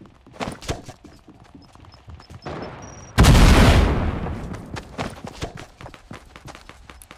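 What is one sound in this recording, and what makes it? Footsteps patter quickly on wood and grass.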